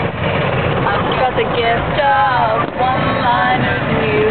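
A young person sings loudly and playfully close by.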